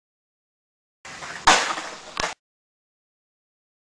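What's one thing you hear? A person's shoes land with a thud on the ground.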